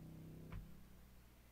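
A keyboard plays a sustained chord.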